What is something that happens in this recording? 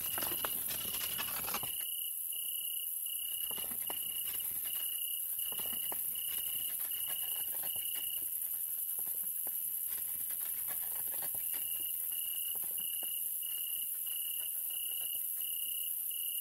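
A pallet jack beeps in a steady repeating pattern as it moves.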